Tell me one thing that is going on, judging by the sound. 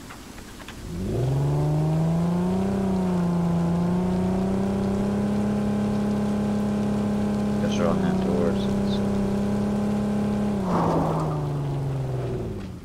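A vehicle engine starts and runs with a steady drone, revving up briefly.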